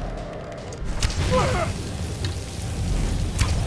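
A blast of icy breath whooshes and roars.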